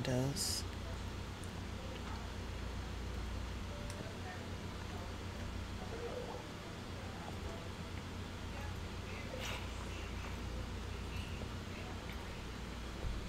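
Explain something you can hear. A young woman talks quietly into a close microphone.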